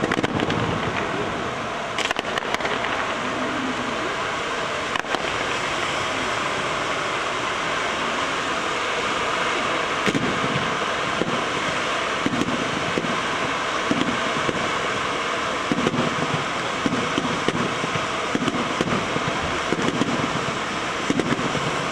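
A fireworks fountain roars and hisses over water.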